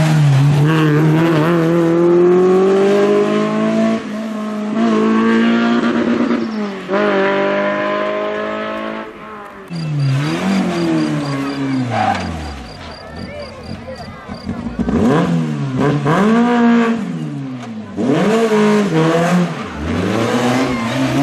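A rally car engine revs hard and roars loudly through gear changes.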